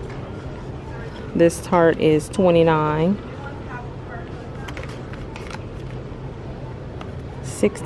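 A small cardboard box slides out of a plastic holder.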